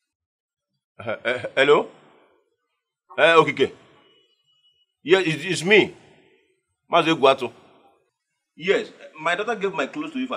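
A middle-aged man speaks with agitation into a phone, close by.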